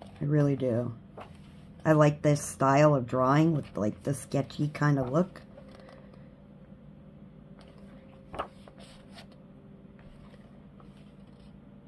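Paper pages rustle and flap as a book's pages are turned by hand.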